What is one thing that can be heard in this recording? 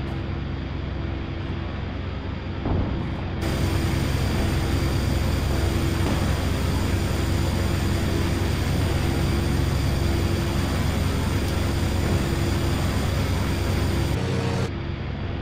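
Propeller engines drone loudly and steadily.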